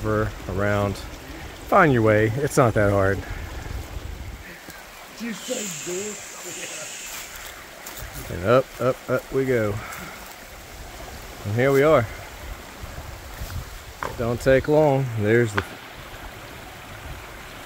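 A shallow creek trickles over rocks.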